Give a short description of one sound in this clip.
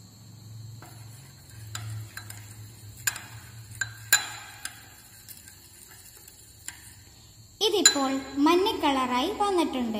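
A metal spoon clinks and scrapes against a bowl.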